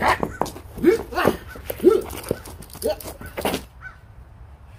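Shoes scrape and scuff on concrete.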